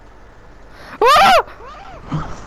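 A cartoon character lets out a short squeaky cry as it is struck.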